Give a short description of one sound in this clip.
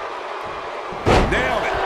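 A body slams hard onto the mat.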